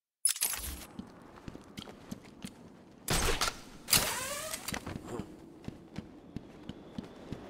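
Footsteps walk steadily over rough ground.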